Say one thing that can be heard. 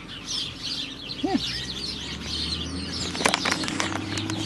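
A dog crunches a small treat.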